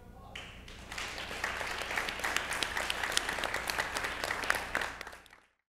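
A small group of people clap their hands.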